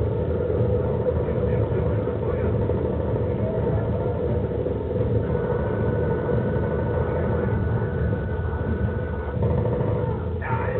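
A helicopter's rotors thrum steadily and loudly.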